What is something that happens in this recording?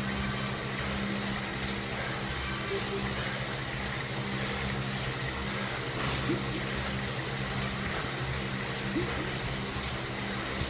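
An indoor bike trainer whirs steadily.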